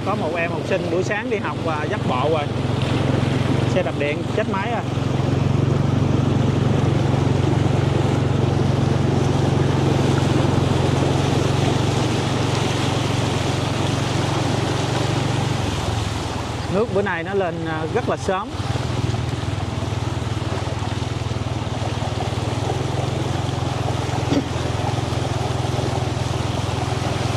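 A motorbike engine hums steadily as it rides through water.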